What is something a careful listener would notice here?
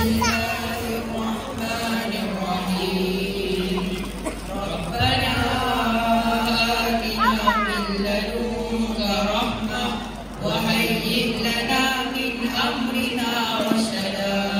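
Young men sing together into microphones, heard through loudspeakers in a large hall.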